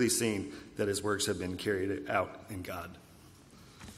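A young man reads out through a microphone.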